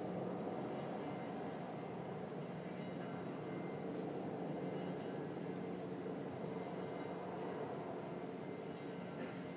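A large crowd murmurs softly outdoors.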